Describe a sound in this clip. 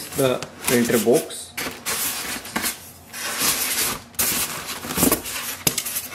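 Foam packing squeaks as it is lifted out.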